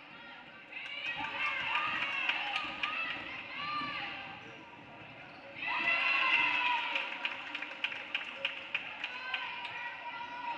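Spectators and players shout and cheer.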